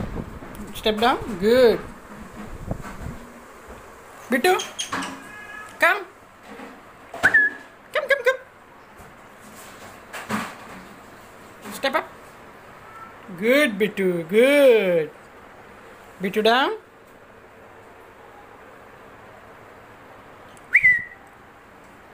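A parrot squawks and chatters close by.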